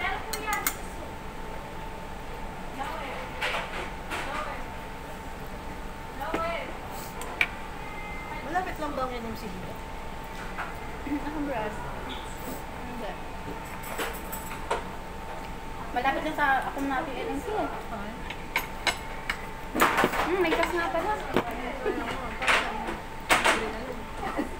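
Two young women talk casually, close by.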